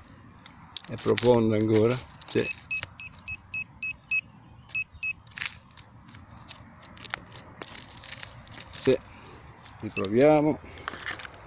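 A handheld metal detector whines with a loud warbling tone.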